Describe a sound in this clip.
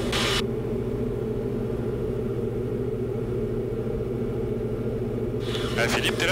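A light aircraft engine drones steadily.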